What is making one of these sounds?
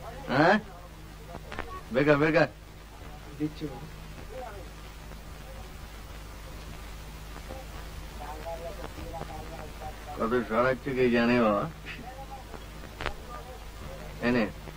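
A young man speaks in a slurred, drowsy voice.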